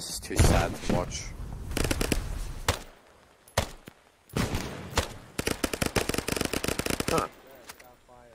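Explosions boom and crackle close by.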